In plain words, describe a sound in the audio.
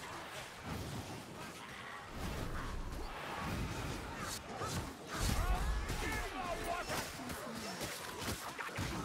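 Weapons strike and clash with heavy thuds.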